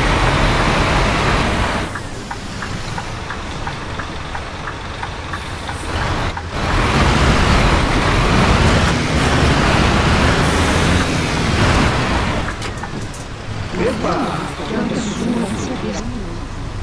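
Rain patters on a bus windscreen.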